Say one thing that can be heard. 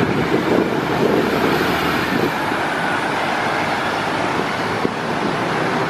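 A city bus pulls away and drives off.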